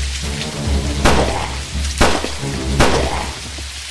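Sharp gunshots ring out a few times.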